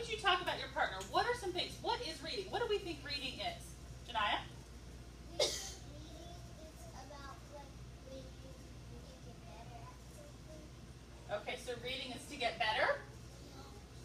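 A woman speaks with animation to a group of children.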